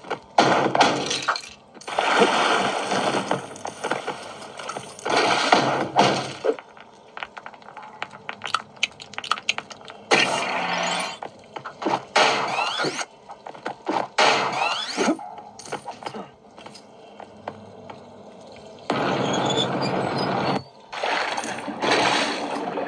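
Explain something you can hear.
Game sound effects and music play from a tablet's speaker.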